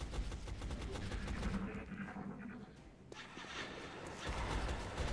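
Low electronic game sounds rumble.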